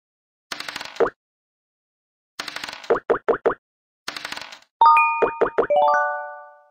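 Game pieces hop along with quick knocking clicks.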